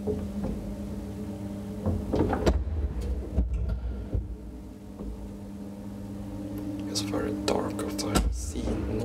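An elevator motor hums steadily.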